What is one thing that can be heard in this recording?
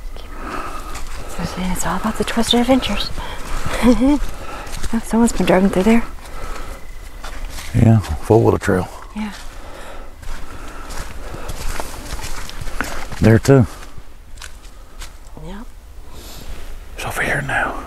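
Dry leaves crunch underfoot as someone walks.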